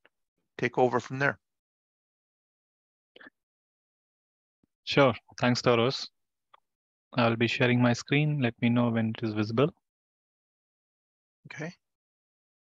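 A man speaks calmly through a headset microphone on an online call.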